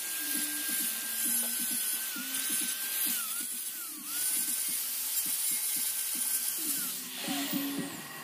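An angle grinder whines loudly as it cuts metal, then winds down.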